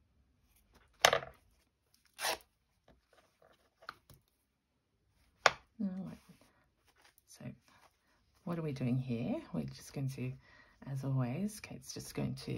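Fabric rustles softly as it is handled.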